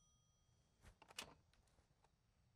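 A phone handset is lifted off its hook with a clunk.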